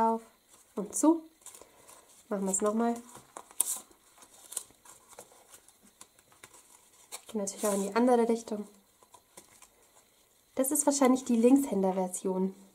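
Paper and card rustle and tap as they are handled.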